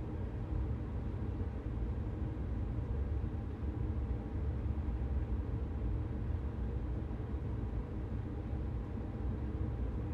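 An electric train hums and rumbles steadily along the tracks.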